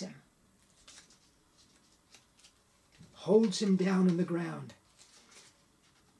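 Paper rustles softly in a man's hands.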